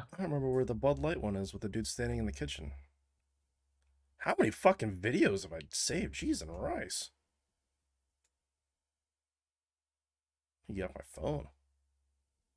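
A man talks with animation into a headset microphone over an online call, in short bursts.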